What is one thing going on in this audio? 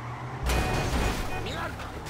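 A car crashes with a loud thud.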